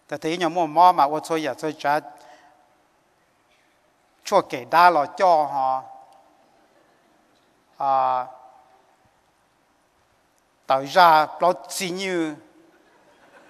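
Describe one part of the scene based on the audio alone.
A middle-aged man speaks calmly into a microphone, in bursts with pauses, in a reverberant hall.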